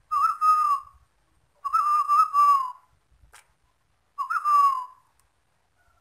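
A dove calls nearby in short, clear hooting notes.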